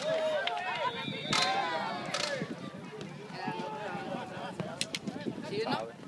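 A crowd of young spectators cheers and shouts excitedly outdoors nearby.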